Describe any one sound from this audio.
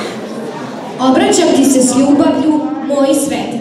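A young girl reads out loud through a microphone.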